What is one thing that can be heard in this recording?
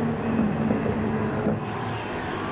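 A race car engine roars as the car drives past.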